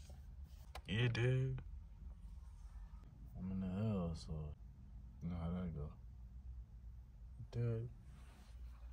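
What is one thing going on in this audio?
A young man speaks in short, relaxed phrases close by.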